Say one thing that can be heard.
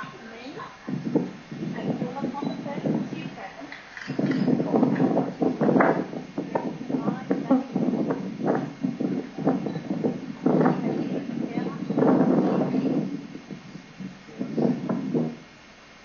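A man speaks calmly, heard through a small loudspeaker.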